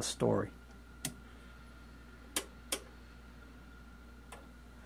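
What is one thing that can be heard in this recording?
Knobs click sharply as they are turned.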